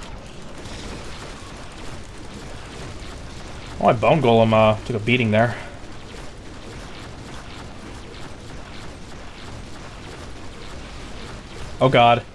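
Weapons clash and magic bursts crackle in a fight.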